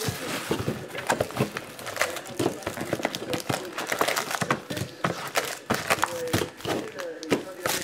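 Card packs tap and knock against each other.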